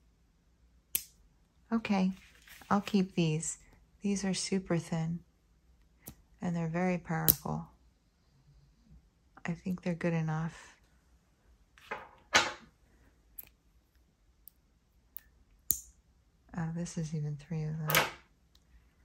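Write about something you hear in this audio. Small metal magnets click against each other.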